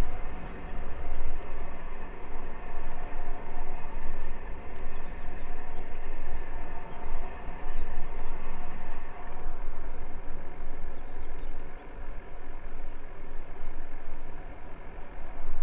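Bicycle tyres hum steadily on smooth asphalt.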